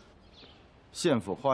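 A man speaks with surprise.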